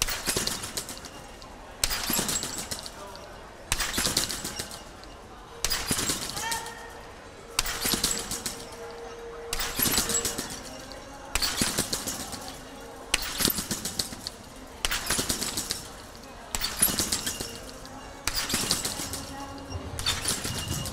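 Trampoline springs creak and clatter in a steady rhythm as gymnasts bounce in an echoing hall.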